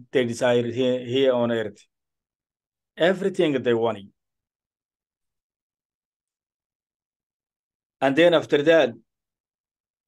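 A man recites in a slow, melodic voice close to a microphone, pausing between phrases.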